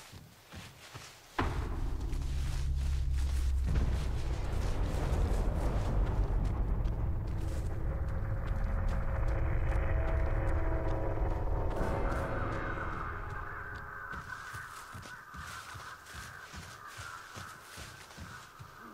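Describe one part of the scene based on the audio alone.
Heavy footsteps tread over soft ground.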